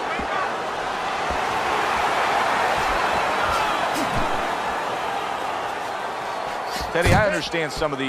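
A crowd roars in a large arena.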